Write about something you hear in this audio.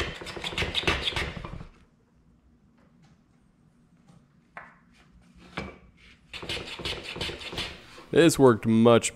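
A hand plane shaves wood with a soft rasping hiss.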